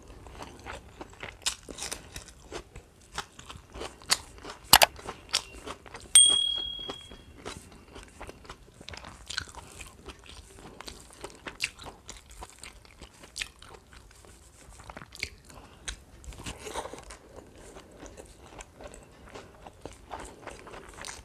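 Fingers squish and mix rice and food close by.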